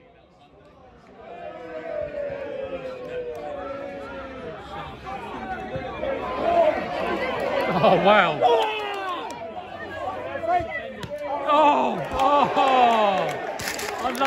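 A crowd cheers and shouts outdoors, rising loudly.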